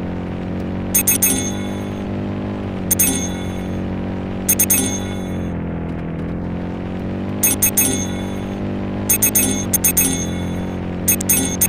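Bright chimes ring out in quick bursts as coins are collected.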